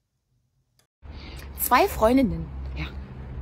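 A woman speaks with animation through a small phone speaker.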